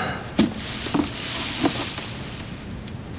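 Tissues rustle as a young man pulls them from a box.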